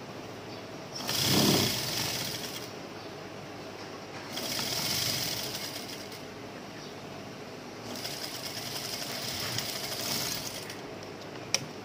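A sewing machine stitches in short bursts.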